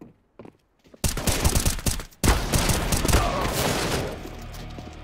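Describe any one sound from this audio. Rifle shots ring out in rapid bursts.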